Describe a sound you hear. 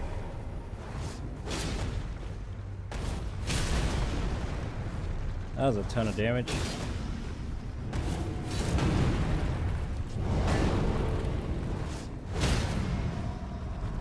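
Metal weapons clash and strike with sharp bursts.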